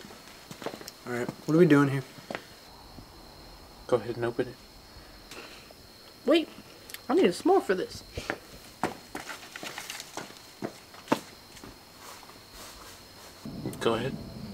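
Young men speak quietly to each other nearby.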